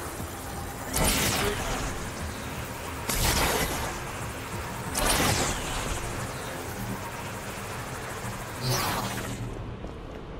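Energy blasts whoosh and crackle in bursts.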